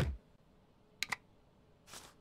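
A stamp thumps down onto paper twice.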